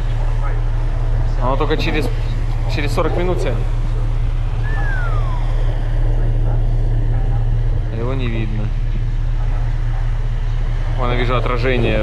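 Water splashes and churns against a moving boat.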